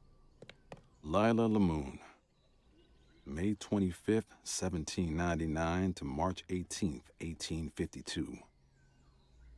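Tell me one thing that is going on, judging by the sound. A man speaks calmly and clearly, close to a microphone.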